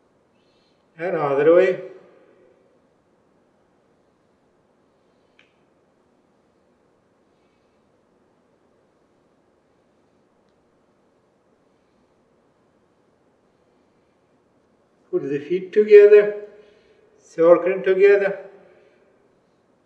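A man speaks calmly and briefly into a microphone in a quiet room.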